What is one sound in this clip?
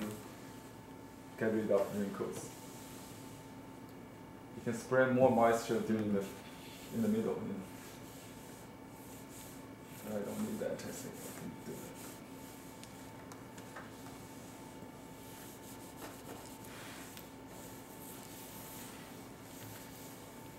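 An iron glides over paper with a soft rustle.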